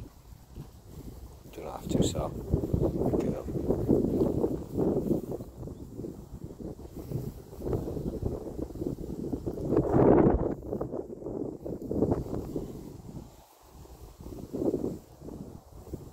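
Footsteps rustle through long grass.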